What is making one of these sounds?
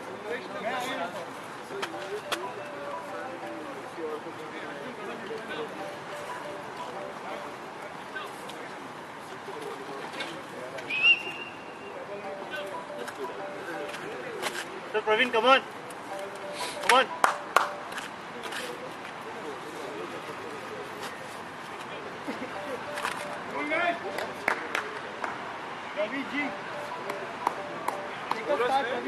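Men call out to each other across an open field, distant and outdoors.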